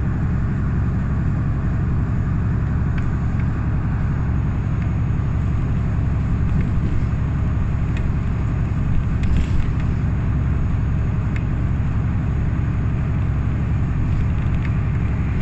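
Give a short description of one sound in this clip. Trucks rush past close by on the highway.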